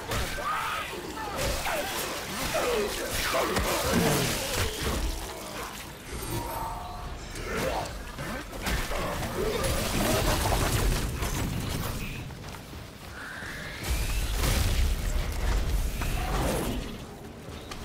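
A monster growls and shrieks close by.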